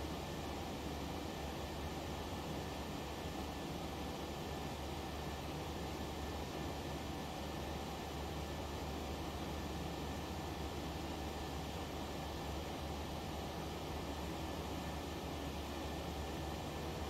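A jet engine hums in a steady low roar.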